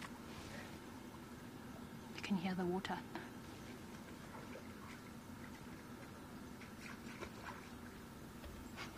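An animal's paws splash through shallow muddy water.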